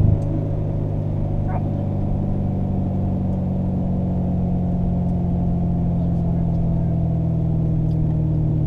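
A sports car engine drones steadily from inside the cabin, rising slowly.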